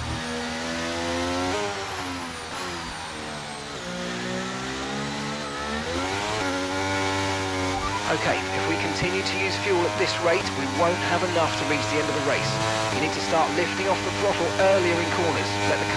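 A racing car engine revs high, its pitch rising and falling with gear changes.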